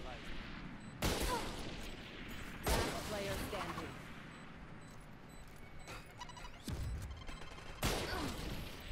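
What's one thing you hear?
A sniper rifle fires loud, echoing shots.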